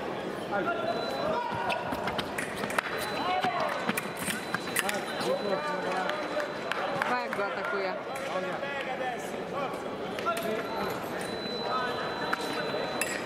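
Fencing blades clink against each other.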